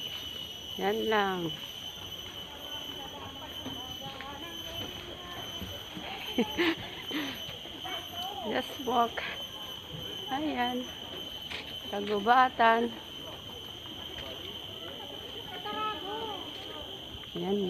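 A young woman talks close by in short, lively bursts.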